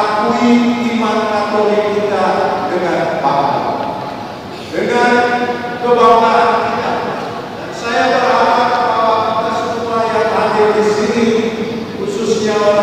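A large crowd sings together in a large echoing hall.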